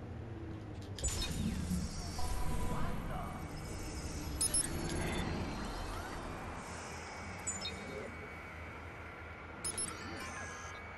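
Short electronic beeps and chirps sound now and then.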